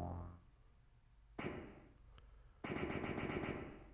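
A spear swishes out with a short electronic sound effect.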